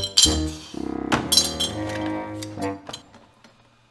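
Metal parts clink together as they are handled.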